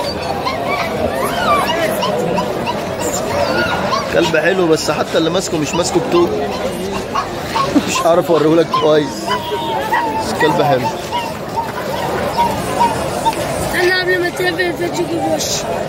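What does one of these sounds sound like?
A crowd of men talks and calls out nearby, outdoors.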